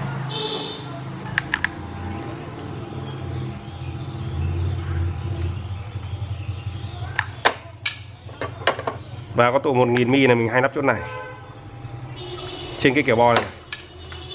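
Plastic parts click and knock as a circuit board is handled.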